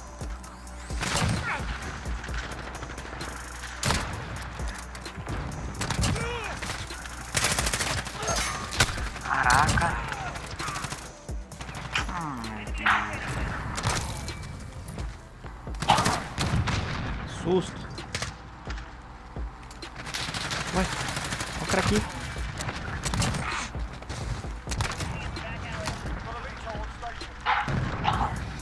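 Guns fire in loud, sharp shots and short bursts.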